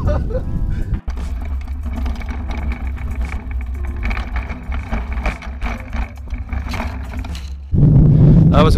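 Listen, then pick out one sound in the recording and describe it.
Bicycle tyres roll and rattle over a dirt track.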